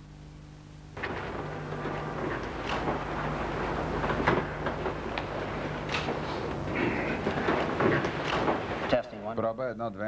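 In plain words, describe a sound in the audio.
A crowd murmurs and chatters in a large room.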